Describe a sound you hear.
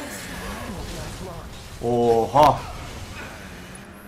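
A sword clangs against metal.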